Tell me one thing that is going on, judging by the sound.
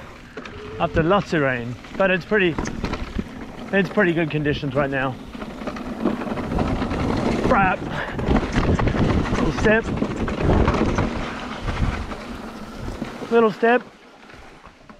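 Bicycle tyres rumble and crunch over a dirt trail.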